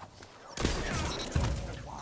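Gunfire from a video game rings out.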